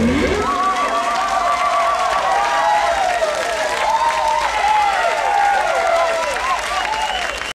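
A band plays loud live music with wailing, bending guitar notes.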